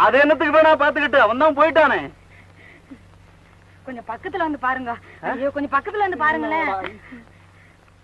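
A young woman speaks urgently nearby.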